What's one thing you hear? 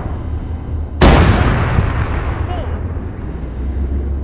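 A missile launches with a sudden loud whoosh.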